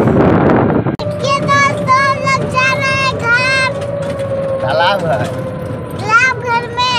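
A young child talks in a high, lively voice close by.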